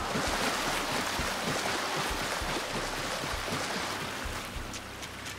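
Heavy footsteps thud quickly on soft, wet ground.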